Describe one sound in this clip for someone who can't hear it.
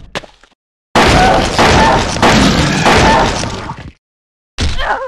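A loud, harsh scuffle of a struggle bursts out and then stops.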